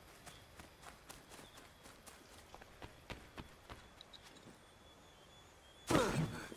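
Footsteps crunch softly through grass and brush.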